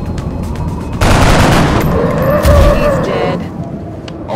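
A loud explosion bursts and roars.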